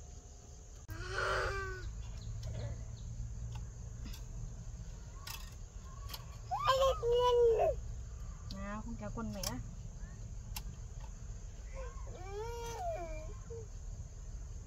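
A small child babbles and calls out nearby.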